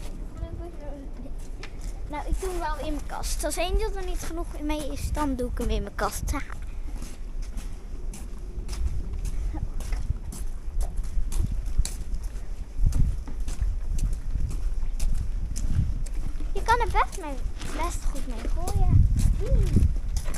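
A young child talks with animation close to the microphone.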